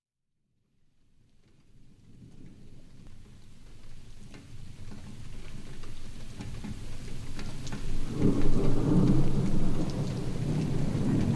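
Thunder rumbles low and grows louder.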